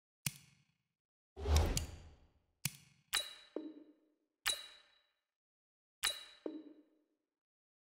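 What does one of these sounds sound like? Short game menu clicks sound one after another.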